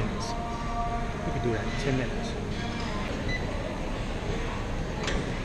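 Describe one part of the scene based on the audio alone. A treadmill belt hums and whirs steadily.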